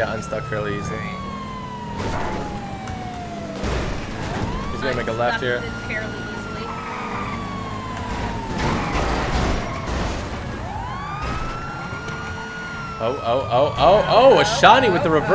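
A police siren wails in a rising and falling cycle.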